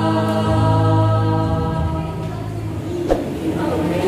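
A group of young people sing together through microphones.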